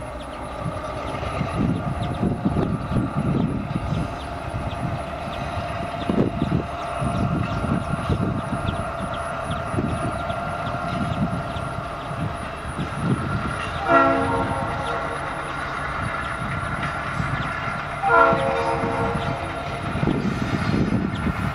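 A diesel locomotive engine rumbles steadily in the distance.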